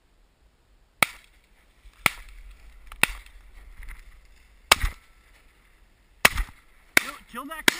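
Shotguns fire several loud, sharp shots outdoors.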